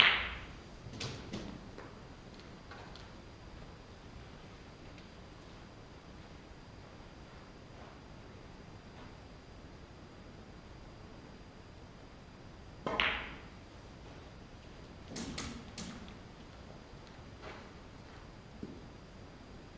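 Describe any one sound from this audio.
Snooker balls knock against each other and the cushions.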